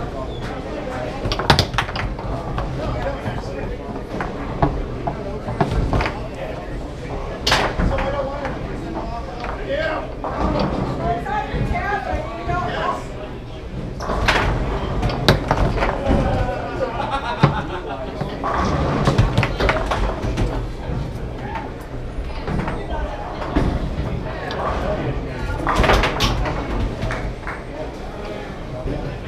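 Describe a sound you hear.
A foosball ball clacks and bangs against the rods and walls of a table.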